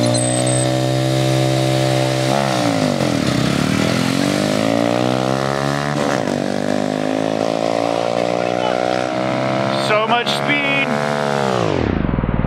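Two small motorcycle engines rev hard and roar as they accelerate away.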